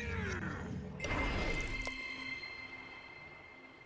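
A magical spell bursts with a shimmering whoosh.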